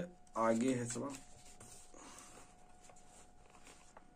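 Paper pages rustle as a book's page is turned.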